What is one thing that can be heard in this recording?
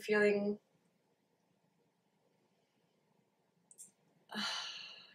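A young woman speaks calmly and close to a microphone, with short pauses.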